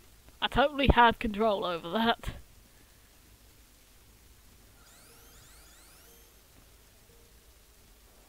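A small kart engine hums.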